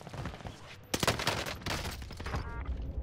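A gun fires several quick shots.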